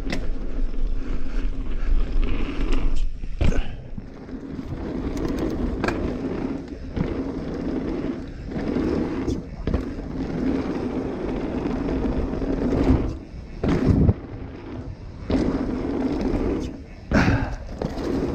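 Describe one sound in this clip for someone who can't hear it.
A bicycle rattles and clunks over bumps.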